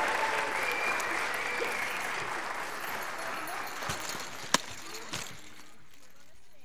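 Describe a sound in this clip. An audience applauds loudly, then the clapping fades away.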